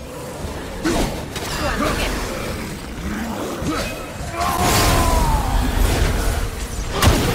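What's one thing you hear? Heavy blows land in a fight.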